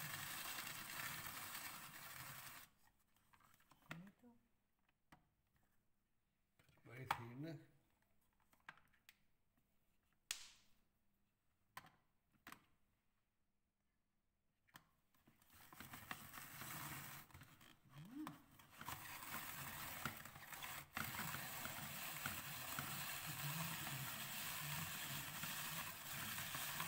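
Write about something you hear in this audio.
A hand-cranked grater rasps and scrapes as it shreds carrots.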